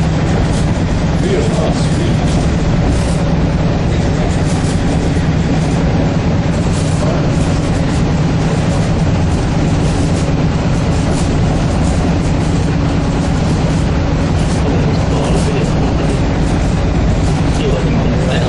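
Train wheels clatter rhythmically over rail joints.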